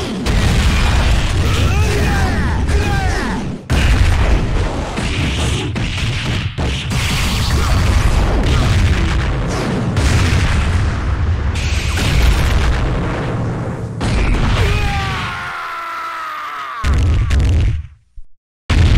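Energy blasts crackle and roar.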